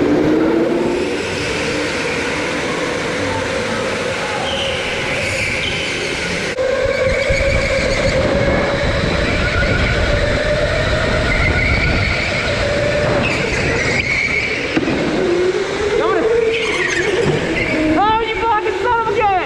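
Kart tyres rumble on a smooth floor.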